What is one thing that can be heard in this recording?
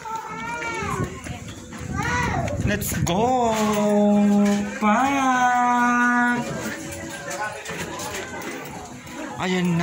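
A young woman sings loudly close by, holding long notes.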